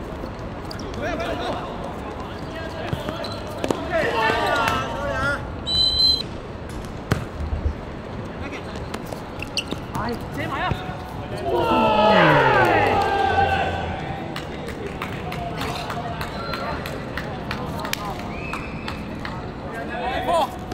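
Young men shout and call out to each other across an outdoor football pitch.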